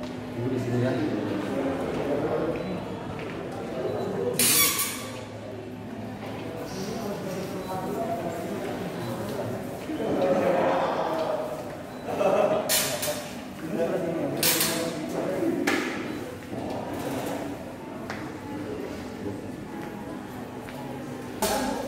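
Several adults talk at once nearby.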